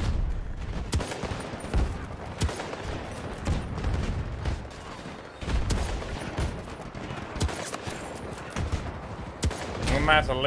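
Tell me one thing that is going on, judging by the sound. Sniper rifle shots crack sharply from a game, every few seconds.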